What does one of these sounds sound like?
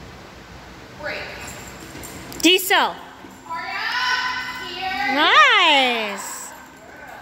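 A young woman calls out to a dog in a high, excited voice.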